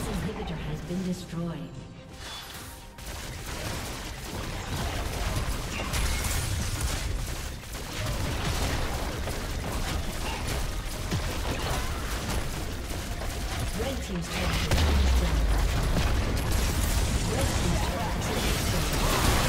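Game spells and attacks clash and crackle in a battle.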